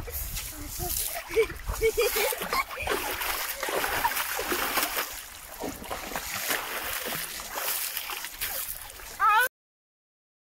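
Water splashes as a boy thrashes in a river.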